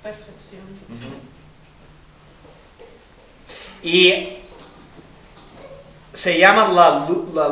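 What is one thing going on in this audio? A man speaks calmly, pausing between phrases.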